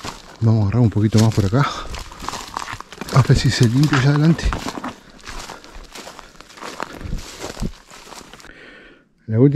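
Footsteps crunch through dry leaves and twigs.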